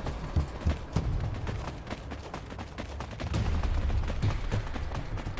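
Footsteps thud quickly across sandy ground.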